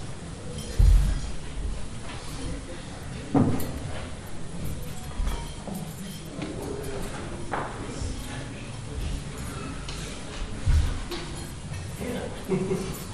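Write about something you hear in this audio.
An elderly man speaks quietly nearby.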